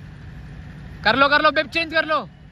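A man shouts loudly close by.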